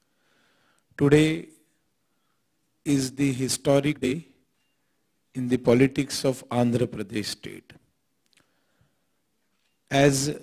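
A man speaks steadily into a microphone, in short phrases with pauses.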